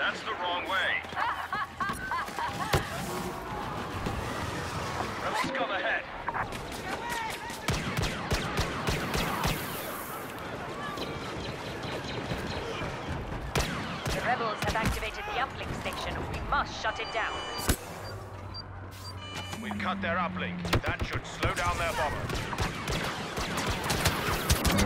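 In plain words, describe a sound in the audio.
Blaster shots crack and zap in quick bursts.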